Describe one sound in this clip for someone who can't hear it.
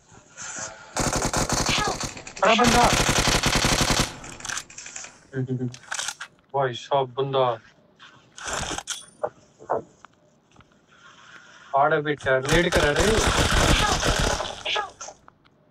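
A rifle fires in rapid bursts close by.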